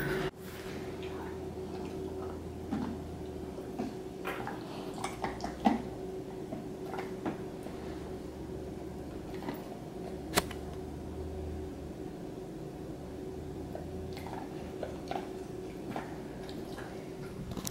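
A dog chews on a plastic toy.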